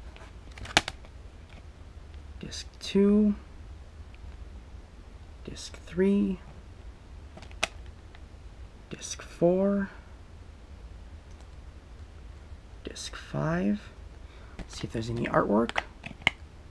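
A plastic disc case clicks as discs are handled.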